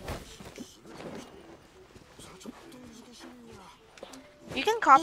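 Blows thud against a tree trunk.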